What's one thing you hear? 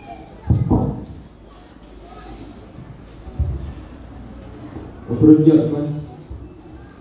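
A man shouts loudly into a microphone, heard through loudspeakers in an echoing hall.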